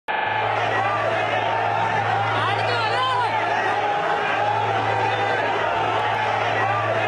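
A crowd of men shouts and jostles in a scuffle.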